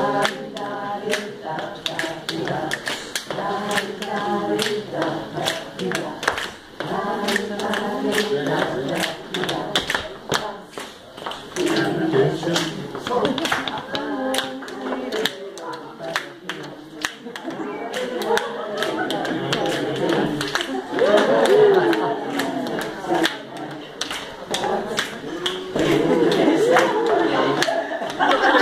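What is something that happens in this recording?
Shoes tap and stomp on a wooden floor.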